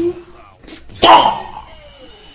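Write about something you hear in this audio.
A heavy punch lands with a loud smack.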